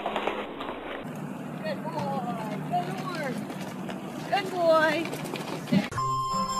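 Small scooter wheels roll and rattle over a paved path.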